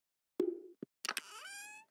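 A short chime rises in pitch.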